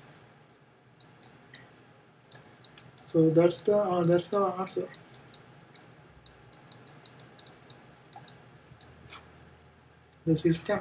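A pen taps and scratches on a tablet.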